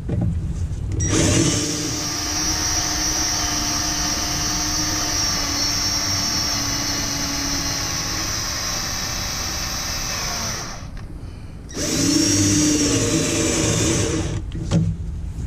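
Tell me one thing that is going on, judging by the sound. A cordless power tool whirs steadily, pausing briefly.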